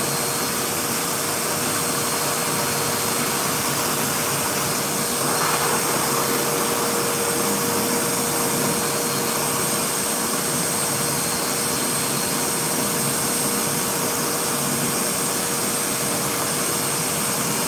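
A pet dryer blows air with a steady loud whoosh and whine.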